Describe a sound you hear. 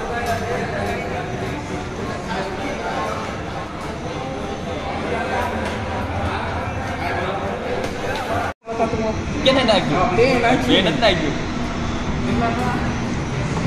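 Young men chat and talk over one another nearby.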